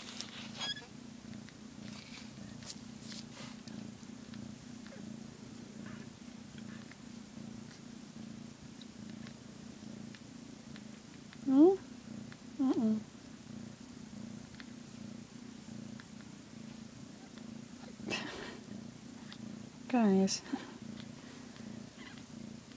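A cat purrs steadily and close by.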